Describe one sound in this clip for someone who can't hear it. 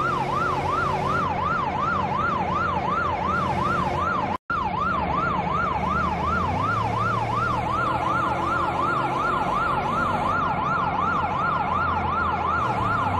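A police siren wails fast and steadily, close by.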